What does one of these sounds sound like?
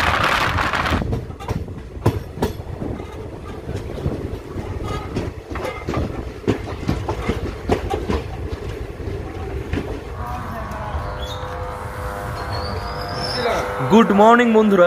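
A train rumbles and clatters slowly into a station.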